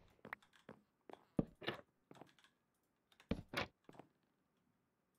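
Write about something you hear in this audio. Footsteps thud on wooden boards.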